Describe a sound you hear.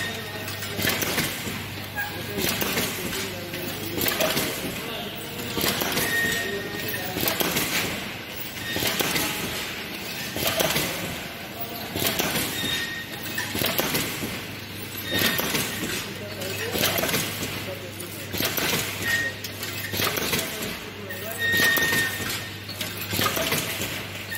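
A packing machine whirs and clatters steadily.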